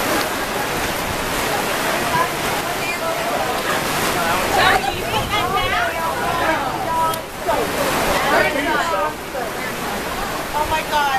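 Young women talk and shout excitedly close by.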